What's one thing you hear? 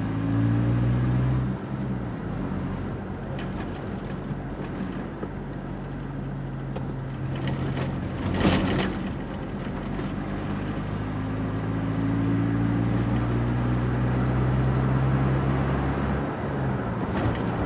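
A car engine hums steadily from inside the car, rising as the car speeds up.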